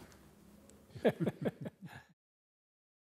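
An elderly man laughs softly.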